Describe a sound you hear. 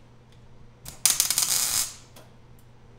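A welding torch buzzes and crackles in a short burst.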